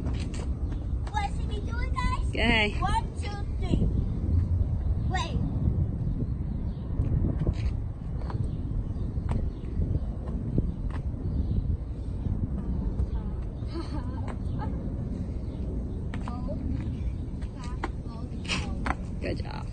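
A young girl's shoes slap on asphalt as she hops.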